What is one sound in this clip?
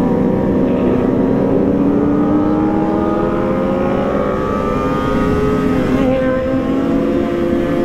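A motorcycle engine hums steadily and rises slowly in pitch as it speeds up.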